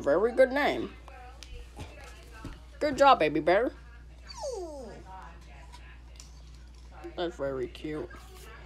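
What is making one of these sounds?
Soft plush toys rustle as they are handled.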